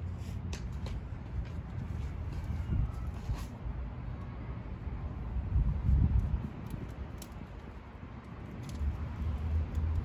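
Hands crumble and rub loose soil.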